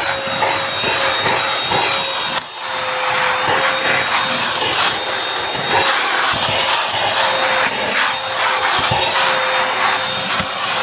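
A handheld vacuum cleaner whirs steadily at close range.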